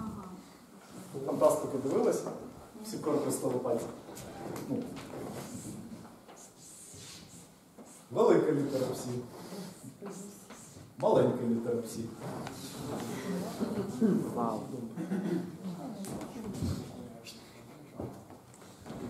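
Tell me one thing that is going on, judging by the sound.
A man lectures in a calm voice in an echoing room.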